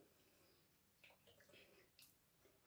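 A woman sips a drink from a glass.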